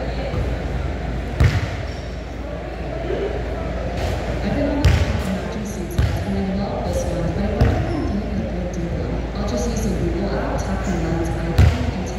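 A basketball clangs off a hoop's rim.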